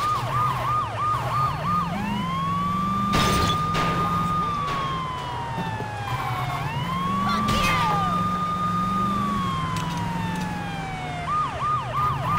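A police siren wails, switching between a fast yelp and a slow rising and falling wail.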